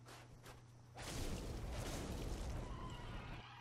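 A blade strikes a creature with a heavy thud.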